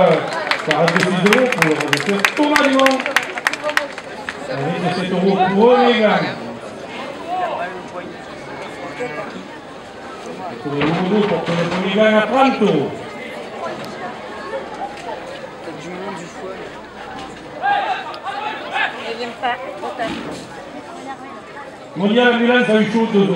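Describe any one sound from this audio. A crowd of spectators cheers and calls out.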